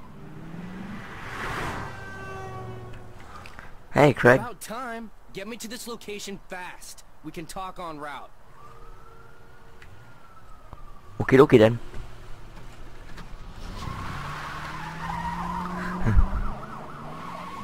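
A car engine revs and roars as a car speeds away.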